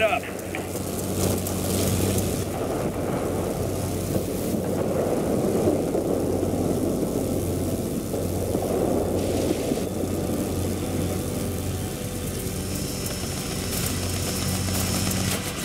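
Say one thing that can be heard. Wind rushes past a plane in flight.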